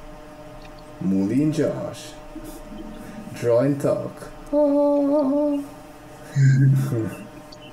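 A young man speaks casually through an online call.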